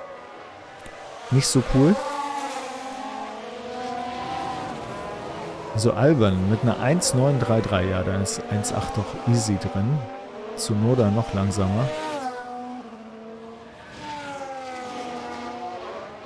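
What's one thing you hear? A racing car engine whines and revs as the car speeds around a track.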